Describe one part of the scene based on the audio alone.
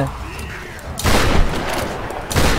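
Guns fire in loud, rapid bursts.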